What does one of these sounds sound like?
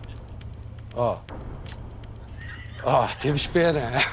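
A man speaks calmly in short phrases into a microphone.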